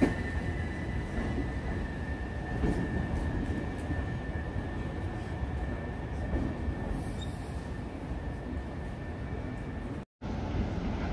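An electric train pulls away, rumbling and whining steadily.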